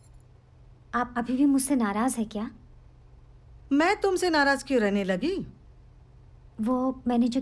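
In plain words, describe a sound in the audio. A woman speaks in short, emotional phrases nearby.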